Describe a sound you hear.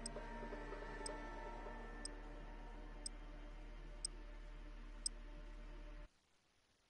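Brooding electronic game music plays with low sustained tones.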